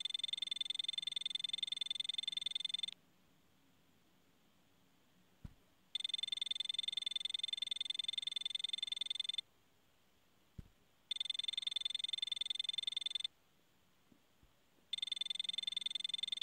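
Rapid electronic blips chatter as game text types out, in bursts with pauses between.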